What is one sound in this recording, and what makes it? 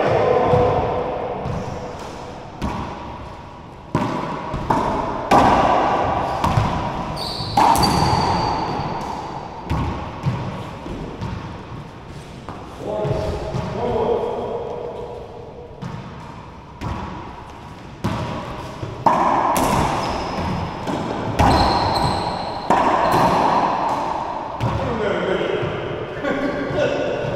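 A ball smacks sharply off the walls in a large echoing court, over and over.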